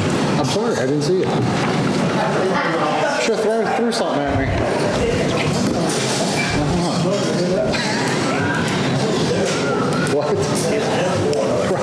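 An elderly woman speaks to a room, heard close by.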